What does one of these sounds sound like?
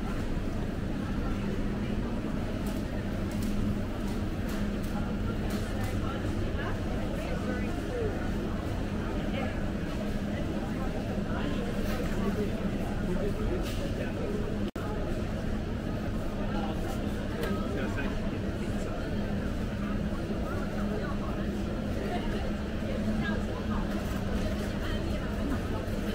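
Shopping cart wheels rattle and roll over a hard floor.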